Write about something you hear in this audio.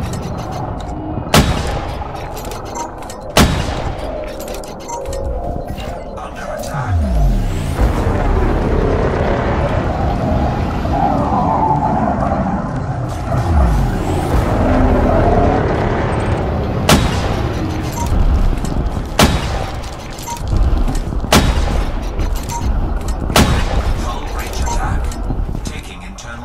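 A spaceship engine rumbles low throughout.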